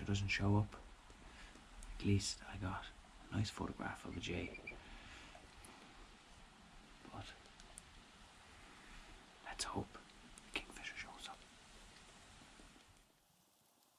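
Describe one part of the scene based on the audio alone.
A young man speaks quietly and calmly, close by.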